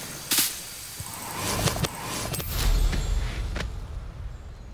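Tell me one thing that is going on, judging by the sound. Leaves rustle as someone pushes through dense bushes.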